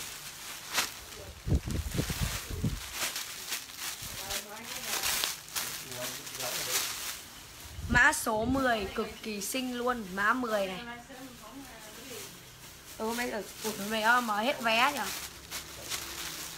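Cloth rustles and flaps as clothes are handled.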